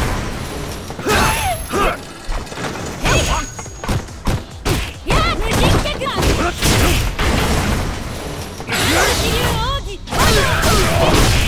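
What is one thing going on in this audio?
Punches and kicks land with heavy, sharp thuds.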